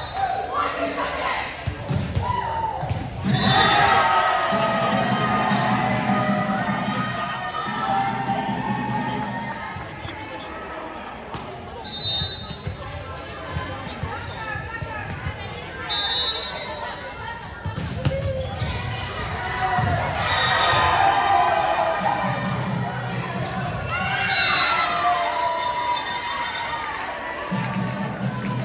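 Young women shout and cheer in a large echoing hall.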